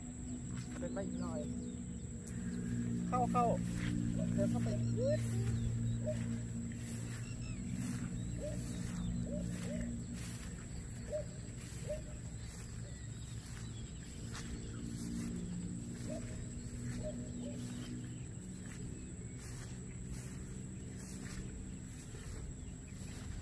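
Footsteps swish through tall wet grass.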